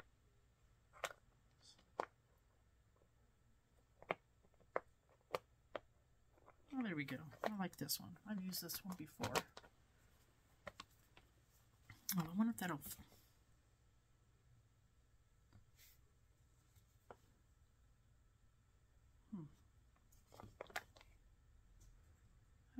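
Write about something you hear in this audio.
A plastic case clicks and knocks against a table.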